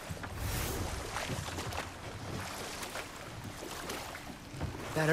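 Water laps against a wooden boat.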